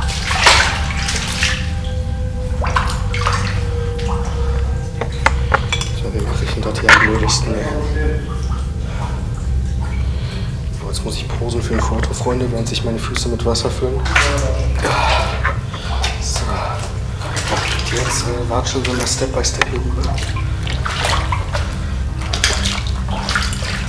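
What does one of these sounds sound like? Boots splash and slosh through shallow water in an echoing tunnel.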